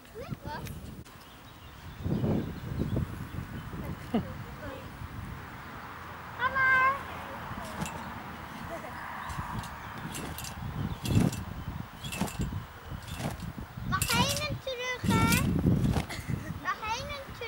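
Young girls shout and squeal outdoors.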